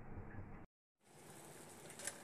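Oil sizzles as food fries in a hot pan.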